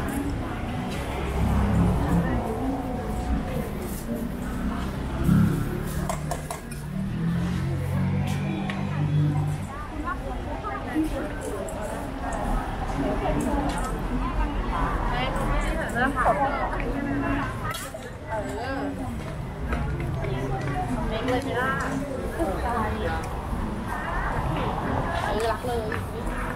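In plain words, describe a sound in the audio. Several women talk nearby.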